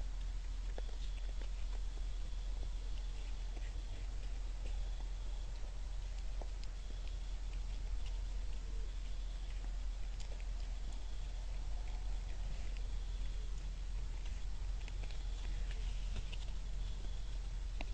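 Deer crunch and nibble on scattered grain close by.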